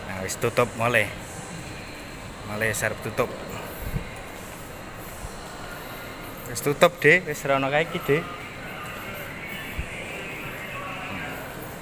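Footsteps tap on a hard tiled floor.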